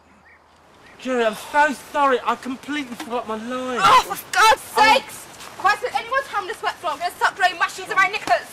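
Several adults talk casually outdoors.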